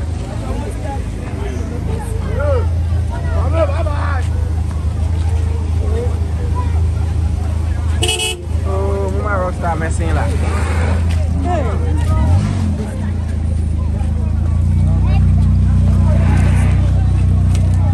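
Several people talk and call out nearby outdoors.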